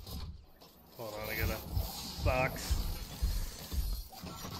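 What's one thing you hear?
An electric crackle and whoosh sounds as a game crate opens.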